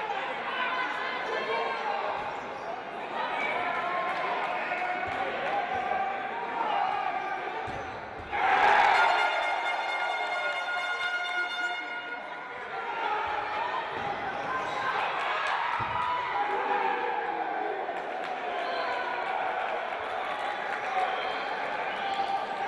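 A crowd chants and cheers in a large echoing hall.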